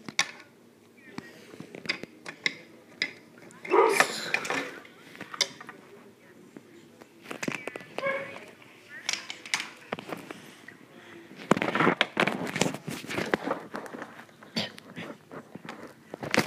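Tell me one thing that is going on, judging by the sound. Plastic toys knock and clatter against a wooden surface.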